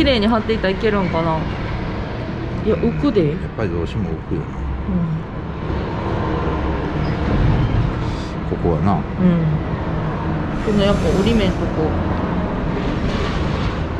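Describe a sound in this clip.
Plastic creaks and clicks as a car headlight is pressed into place.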